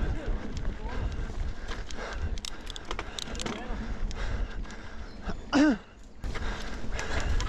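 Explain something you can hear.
A bicycle rattles and clatters over bumps.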